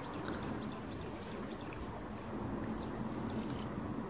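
Water swishes softly as something moves through it.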